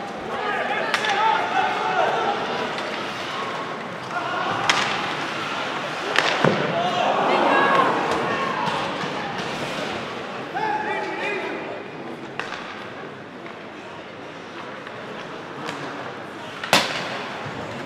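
Hockey sticks and a puck clack sharply.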